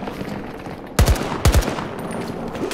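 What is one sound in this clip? Rifle shots crack loudly, two in quick succession.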